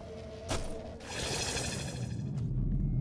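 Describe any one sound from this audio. A crackling burst of energy whooshes loudly.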